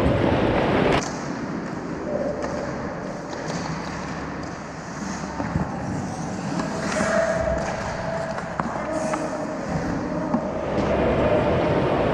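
Skates scrape and carve across ice in a large echoing rink.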